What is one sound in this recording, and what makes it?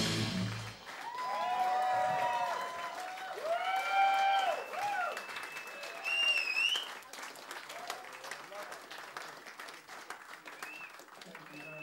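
A crowd claps their hands steadily.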